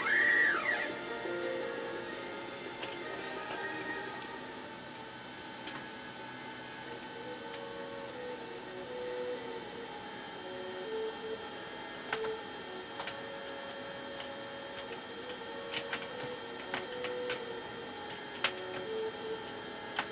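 Light video game music plays from a television speaker.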